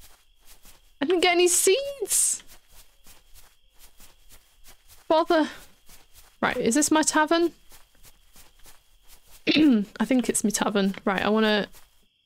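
A young woman talks casually and with animation into a close microphone.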